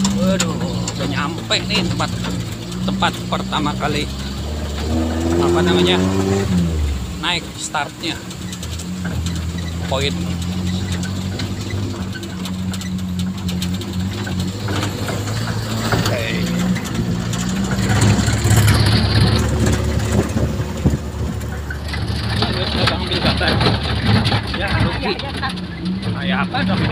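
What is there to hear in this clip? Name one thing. An engine drones steadily as a vehicle drives along.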